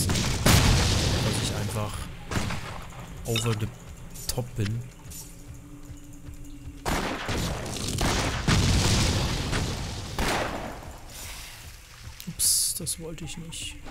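Game spells burst and whoosh in loud noisy blasts.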